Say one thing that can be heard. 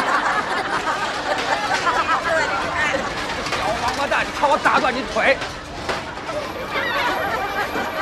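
A young boy laughs gleefully.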